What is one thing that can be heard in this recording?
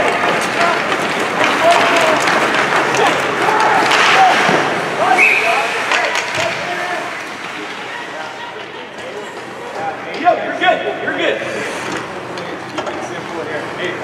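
Young men shout to each other across an echoing rink.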